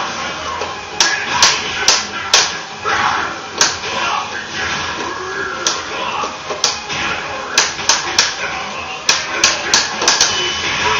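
Punches and kicks land with sharp smacks in a fighting game.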